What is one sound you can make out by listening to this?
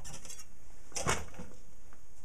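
A thin metal strip clicks against a metal vise.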